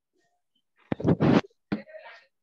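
A finger thumps against the device close up.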